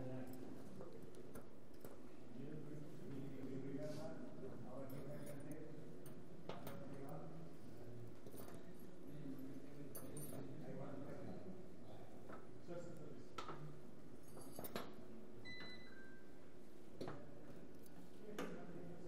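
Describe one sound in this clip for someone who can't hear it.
Several men talk quietly nearby in a large echoing hall.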